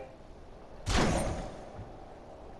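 A heavy wooden door bangs open.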